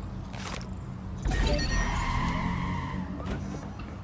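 A door creaks open.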